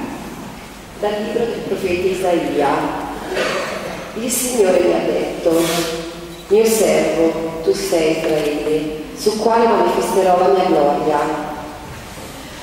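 A woman sings through a microphone in a large echoing room.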